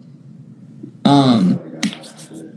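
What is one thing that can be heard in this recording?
A second young man laughs over an online call.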